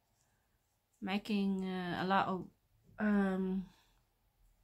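A middle-aged woman speaks calmly and close to the microphone.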